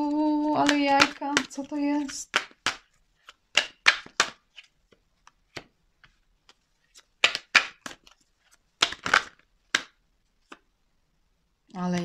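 Playing cards are shuffled with quick flicking sounds.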